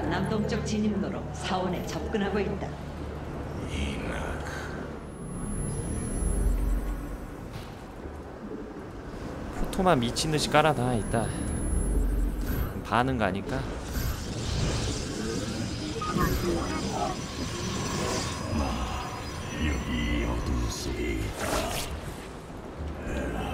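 Electronic game sounds whir and chime as units warp in.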